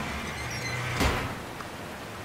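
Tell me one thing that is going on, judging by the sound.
A metal wheel clanks once as it stops.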